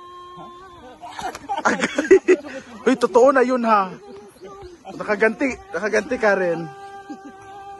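An elderly woman shouts and laughs with animation nearby.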